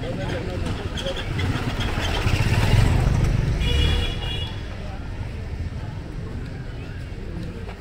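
Street noise of people and distant traffic murmurs outdoors.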